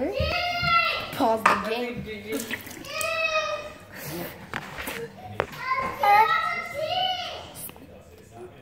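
A young girl talks with animation close by.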